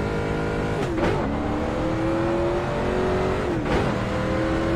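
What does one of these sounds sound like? A race car engine cracks sharply as it shifts gears.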